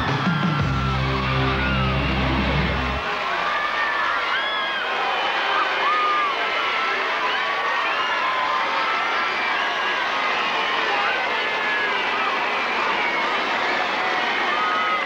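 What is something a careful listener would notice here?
Many people in a crowd whistle loudly.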